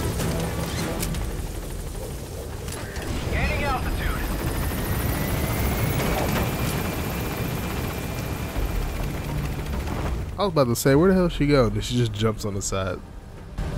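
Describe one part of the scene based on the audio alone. A helicopter's rotor thumps and drones steadily.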